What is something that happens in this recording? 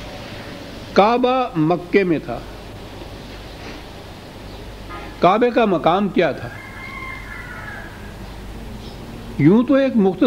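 An elderly man speaks slowly and deliberately into a microphone, in short bursts with pauses.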